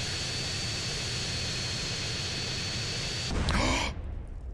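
A jet plane engine roars steadily.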